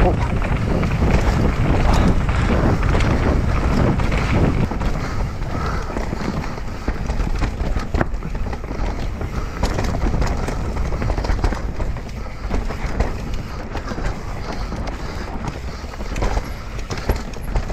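Wind rushes loudly past a fast-moving rider.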